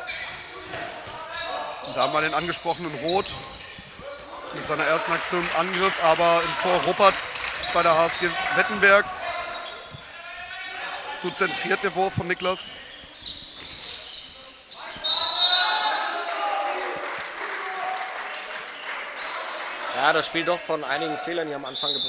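A ball bounces on a hard indoor court.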